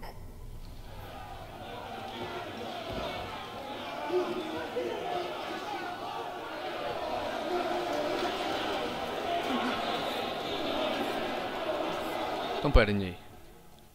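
A crowd cheers and murmurs loudly.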